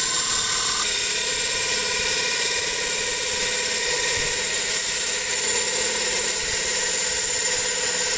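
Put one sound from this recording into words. Sandpaper rubs against a spinning wooden disc.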